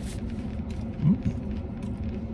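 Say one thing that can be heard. A man lets out a short, pleased hum, close by.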